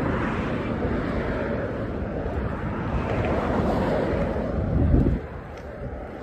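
Wind buffets the microphone outdoors, then dies down.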